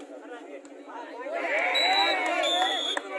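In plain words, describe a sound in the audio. A crowd of spectators cheers and shouts loudly.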